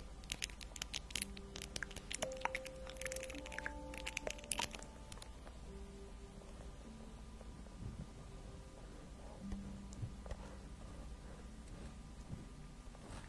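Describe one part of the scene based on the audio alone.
A young woman whispers softly, close to a microphone.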